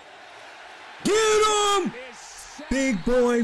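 A young man exclaims loudly and excitedly, close by.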